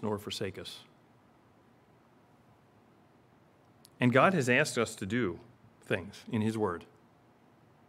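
A middle-aged man speaks with emphasis into a microphone, pausing between phrases.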